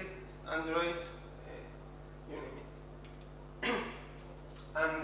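A young man speaks calmly through a microphone, pausing between phrases.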